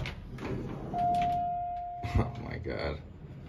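A button beeps with a short steady tone.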